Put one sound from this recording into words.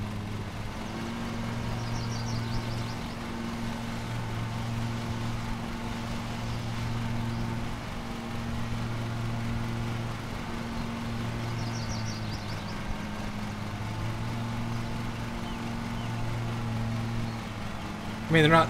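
A mower engine hums steadily.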